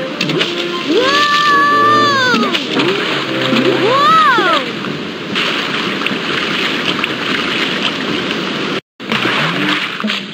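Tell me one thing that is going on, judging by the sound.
Water rushes and splashes steadily along a river.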